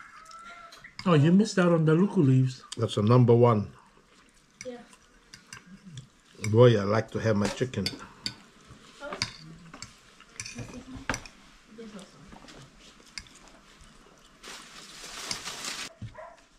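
A fork scrapes and clicks against a plate.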